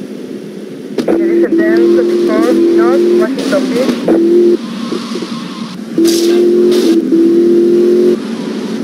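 A car engine revs loudly in bursts.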